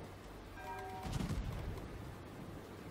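Heavy guns fire with a deep, rumbling boom.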